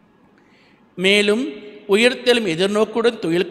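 A man chants through a microphone, in a reverberant hall.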